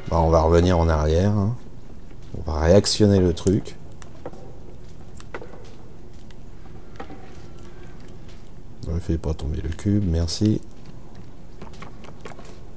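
Light footsteps patter on a creaking wooden floor.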